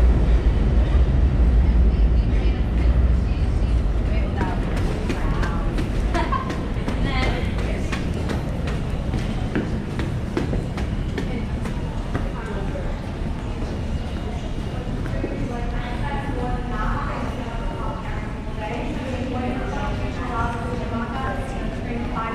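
Footsteps climb stairs and walk on a hard floor in an echoing hall.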